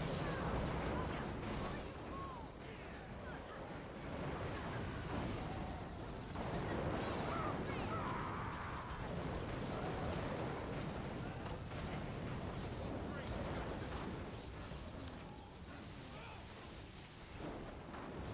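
Magic blasts crackle and thud rapidly.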